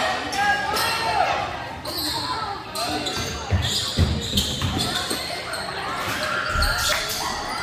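A crowd murmurs and calls out in a large echoing gym.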